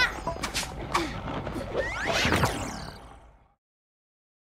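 A magical warp effect whooshes and chimes, then fades away.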